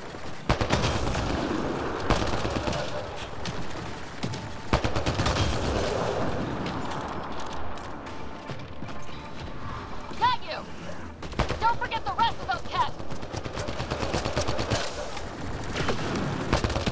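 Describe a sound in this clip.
Rifle shots crack out sharply, several times.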